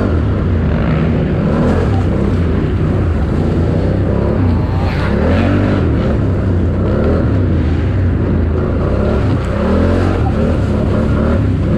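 Mud splashes under the tyres.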